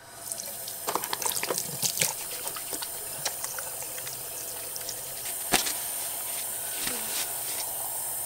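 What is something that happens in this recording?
Hands rub and splash under running water.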